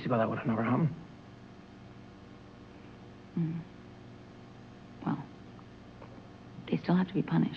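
A woman speaks in short bursts close by.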